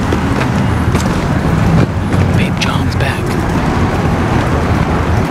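Footsteps tap on paving outdoors.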